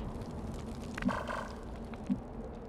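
An explosion bursts with a roar.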